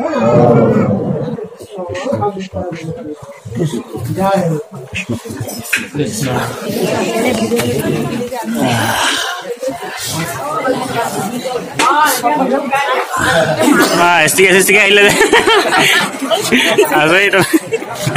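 Men and women talk and call out loudly all around.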